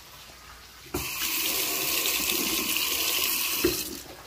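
Water runs into a metal sink.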